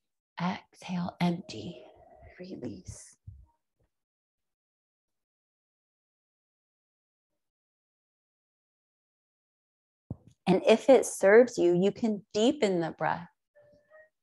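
A woman speaks calmly and softly, close by, with long pauses.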